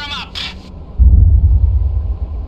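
An underwater mine explodes with a deep, muffled boom.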